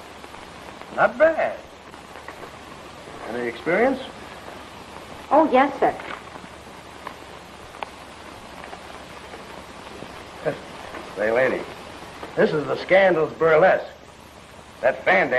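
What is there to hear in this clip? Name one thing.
A man speaks firmly, close by.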